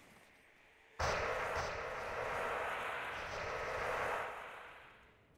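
A magical beam roars with a loud rushing hum.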